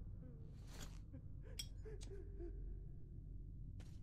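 A lighter clicks and sparks into flame.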